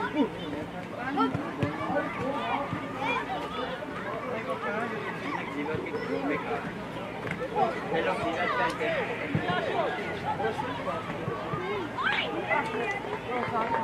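Children shout and call out to each other outdoors.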